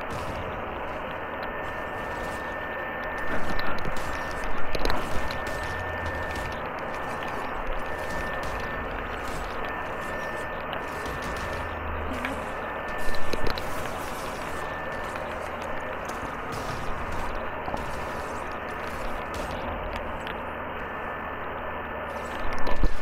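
Flames crackle steadily.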